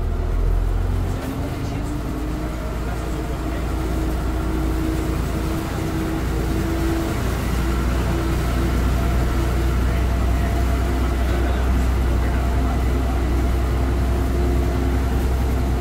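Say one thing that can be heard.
A bus engine revs up as the bus pulls away and turns.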